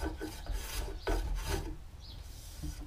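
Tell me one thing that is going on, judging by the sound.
A hand plane shaves along a wooden board.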